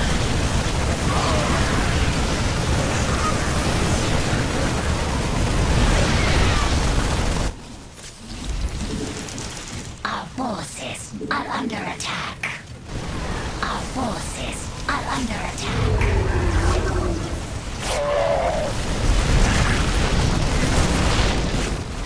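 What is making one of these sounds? Guns fire rapidly in a noisy battle.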